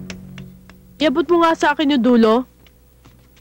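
A young woman speaks nearby with animation.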